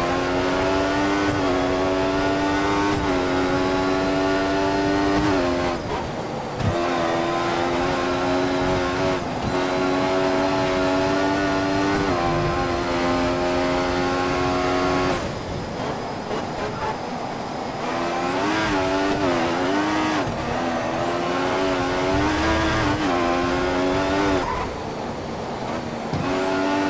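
A racing car engine screams at high revs, rising through the gears and dropping as it slows for corners.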